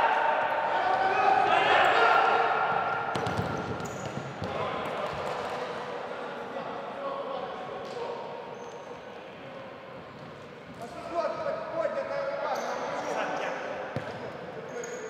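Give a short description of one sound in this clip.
A ball thuds off players' feet and echoes in a large hall.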